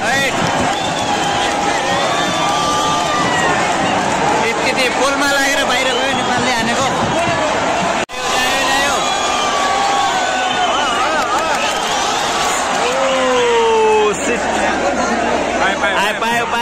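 Nearby men and young men shout and chatter loudly.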